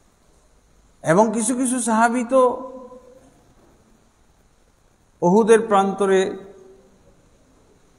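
A middle-aged man speaks with animation into a microphone, in two short bursts.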